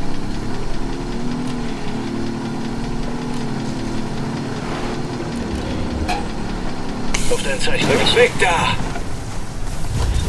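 A car engine roars as it speeds along.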